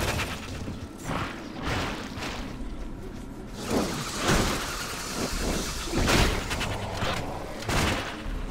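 Weapons slash and hit monsters in quick bursts.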